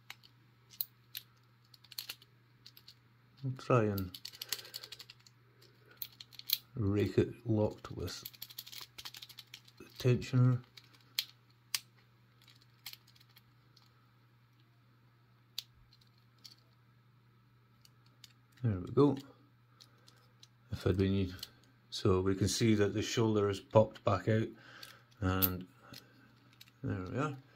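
A thin metal pick clicks and scrapes inside a small padlock.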